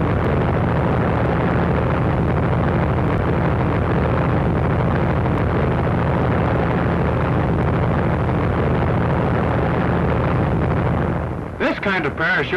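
An airplane engine drones loudly and steadily in flight.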